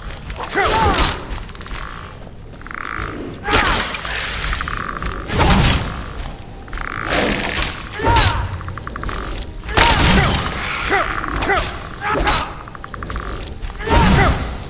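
Blades clash and thud in a fight, over and over.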